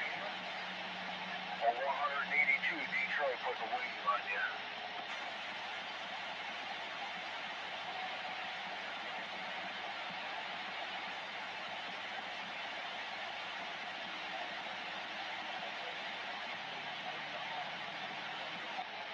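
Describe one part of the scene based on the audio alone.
Radio static hisses steadily from a loudspeaker.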